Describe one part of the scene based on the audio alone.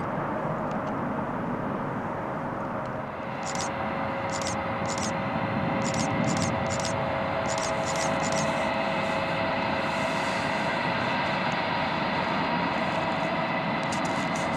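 A twin-engine jet airliner taxis closer, its turbofans whining and roaring.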